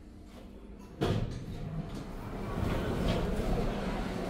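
Elevator doors slide open with a clunk.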